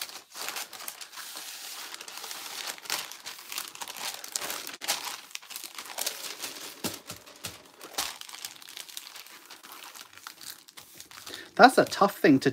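Paper rustles and crinkles as hands fold and smooth it.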